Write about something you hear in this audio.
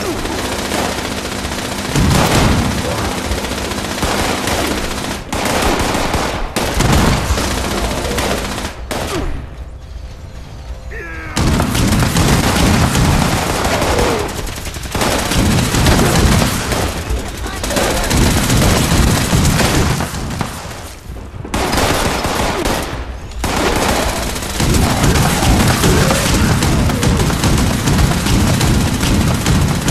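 Laser rifles fire in quick zaps.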